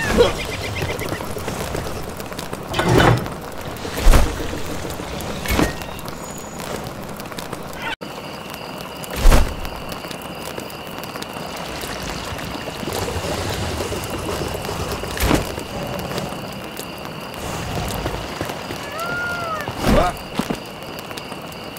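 A fire crackles softly in a brazier.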